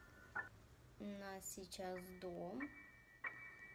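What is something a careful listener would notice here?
A young girl speaks briefly and with animation, close to a microphone.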